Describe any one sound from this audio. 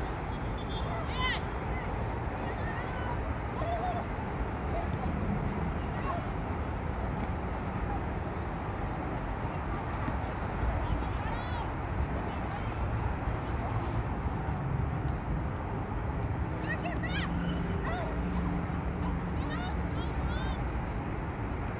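Young women shout to each other in the distance.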